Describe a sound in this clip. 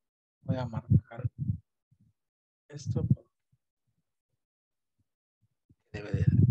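A man speaks calmly over an online call, in short bursts.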